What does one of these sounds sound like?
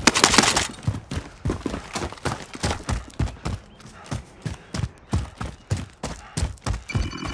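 Footsteps crunch quickly over snowy ground.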